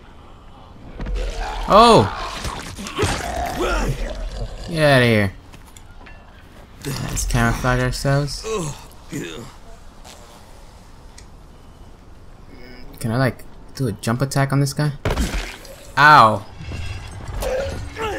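A young man talks with animation into a close microphone, with pauses.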